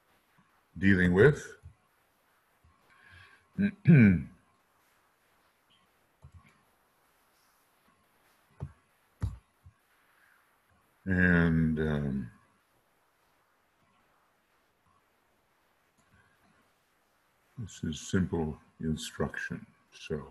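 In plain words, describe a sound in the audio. An older man speaks calmly into a microphone, in short bursts with pauses.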